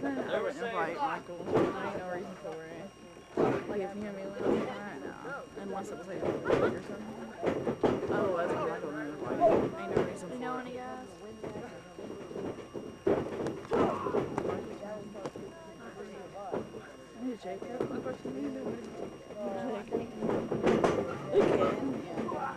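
Bodies slam onto a wrestling ring mat with loud thuds.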